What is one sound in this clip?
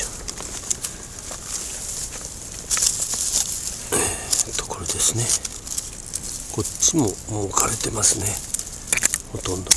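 Pruning shears snip through thin stems.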